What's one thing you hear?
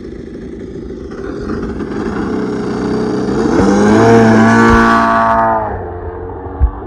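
A model airplane engine buzzes loudly, rising to a high whine as the plane takes off.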